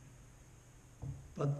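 An elderly man speaks calmly, close by.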